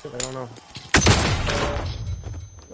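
A loud blast booms and rumbles away.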